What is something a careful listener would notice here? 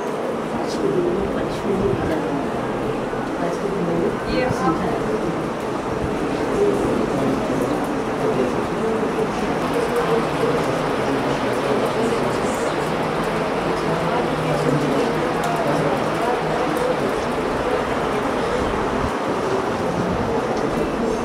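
Many children and adults chatter in a room with some echo.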